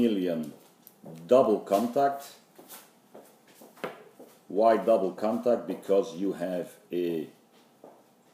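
A middle-aged man talks close by, calmly explaining.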